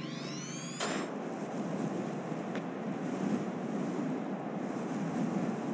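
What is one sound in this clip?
Wind rushes steadily during a glide through the air.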